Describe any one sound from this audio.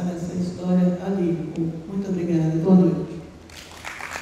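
An older woman speaks steadily into a microphone.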